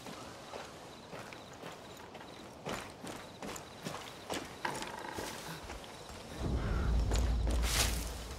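Footsteps crunch on a dirt forest floor.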